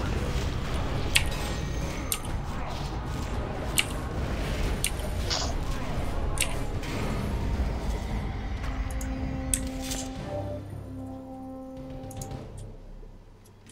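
Weapons clash and magic spells crackle in a fight.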